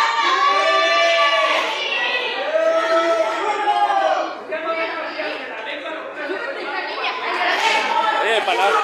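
A crowd shouts and chants loudly in an echoing hall.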